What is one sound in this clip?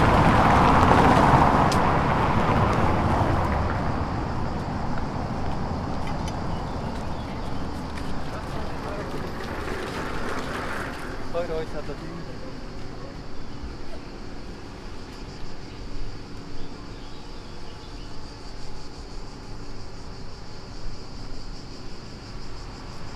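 Footsteps scuff on pavement close by.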